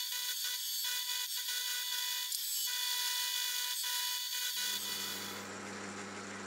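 A milling machine whirs steadily as the cutter works through metal.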